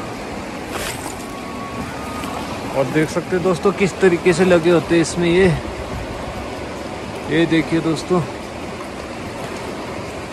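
Water in a river flows steadily nearby.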